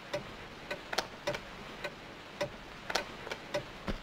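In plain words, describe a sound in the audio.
A wall switch clicks.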